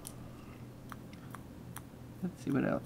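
Tiny rhinestones click softly against a small jar.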